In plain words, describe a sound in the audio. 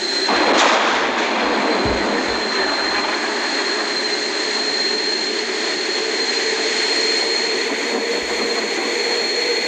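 Rain hisses steadily.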